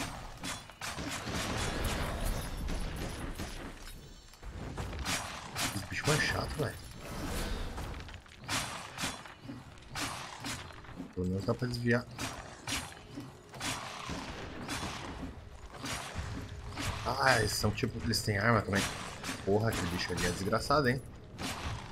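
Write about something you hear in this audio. Magic blasts crackle and boom as monsters are struck in a fight.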